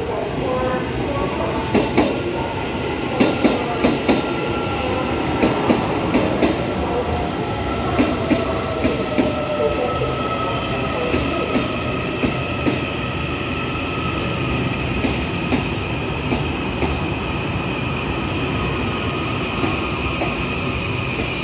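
Train brakes squeal in a high steady whine.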